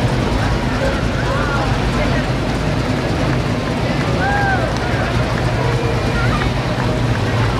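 A crowd chatters outdoors along a street.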